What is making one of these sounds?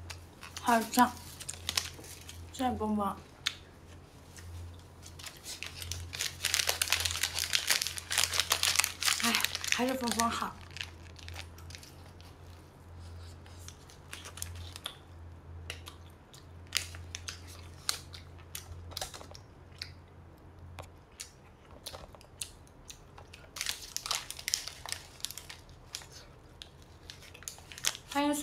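Paper wrapping crinkles and rustles.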